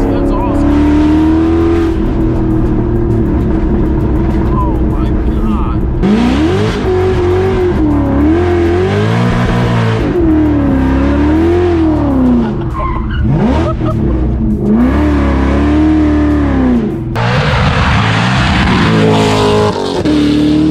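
A car engine roars and revs up and down loudly.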